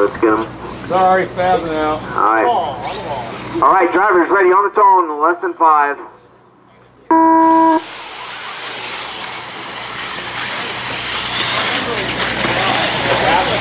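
Small electric model cars whine as they race over dirt.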